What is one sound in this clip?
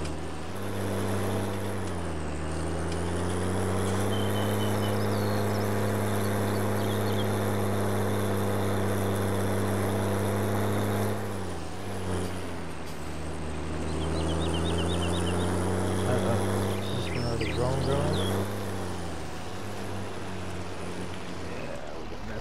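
A tractor engine drones steadily, its pitch rising and falling as it speeds up and slows down.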